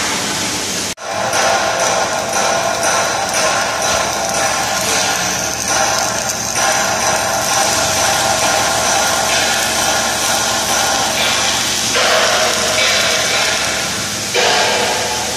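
A welding arc crackles and sizzles steadily.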